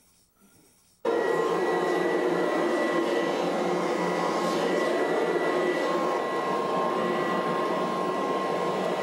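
A vacuum cleaner runs loudly with a steady whine.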